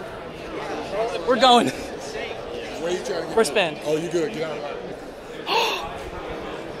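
Men and women talk nearby in a crowded, echoing hall.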